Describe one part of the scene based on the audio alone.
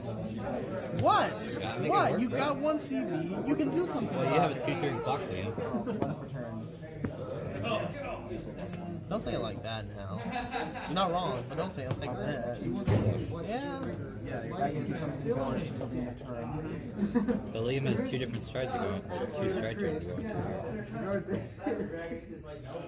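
Playing cards rustle and tap softly on a table.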